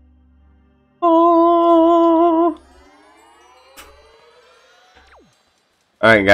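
A bright chiming jingle plays, then a run of rising tones.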